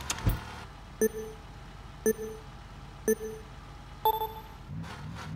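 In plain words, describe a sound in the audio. Countdown beeps sound four times.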